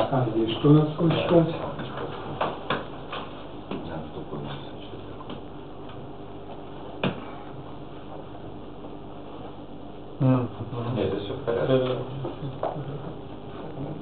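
A middle-aged man speaks calmly in an echoing room.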